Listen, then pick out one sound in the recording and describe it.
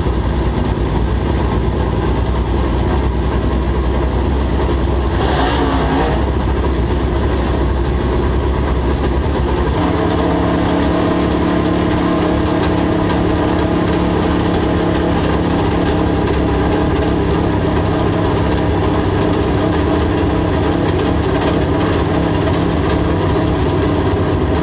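Race car engines roar loudly close by.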